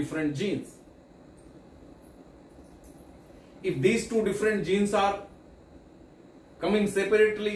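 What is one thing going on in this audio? A middle-aged man speaks with animation, close to a microphone, with pauses between phrases.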